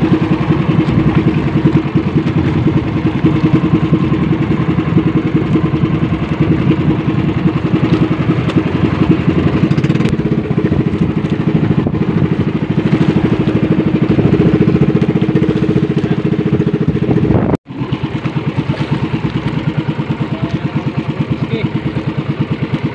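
A boat engine chugs steadily and loudly.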